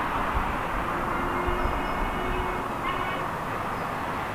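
A steam locomotive's whistle sounds far off.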